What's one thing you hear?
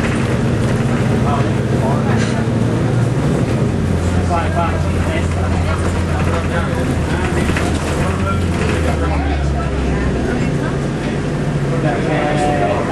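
A vehicle engine hums steadily while driving, its pitch shifting now and then.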